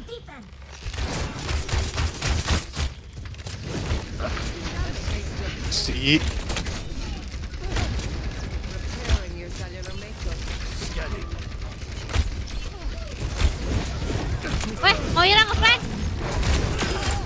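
Arrows whoosh and thud in rapid game combat.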